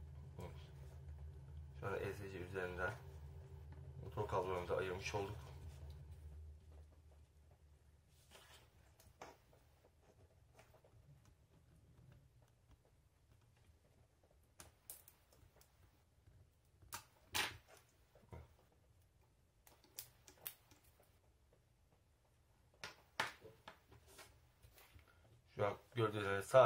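Small plastic and metal parts click and tap together under fingers.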